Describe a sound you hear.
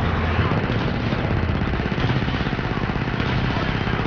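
An energy blast crackles and explodes close by.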